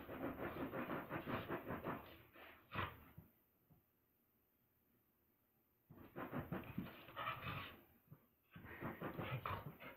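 Dog paws scuffle on a rug.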